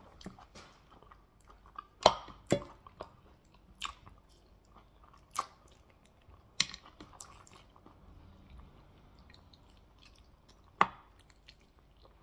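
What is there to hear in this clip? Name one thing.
A man slurps sauce from meat.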